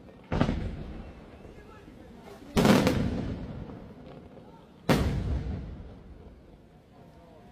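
Fireworks explode with loud booming bangs that echo away.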